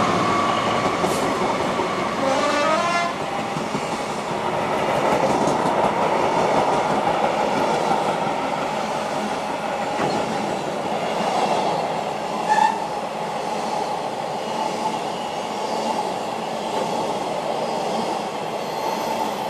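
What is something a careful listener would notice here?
Freight wagons rumble and clatter steadily over the rails.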